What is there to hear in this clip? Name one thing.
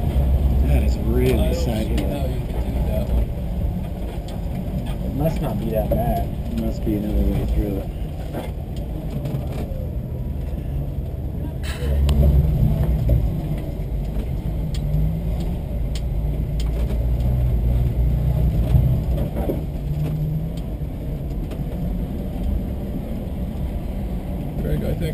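A vehicle's engine rumbles steadily at low speed.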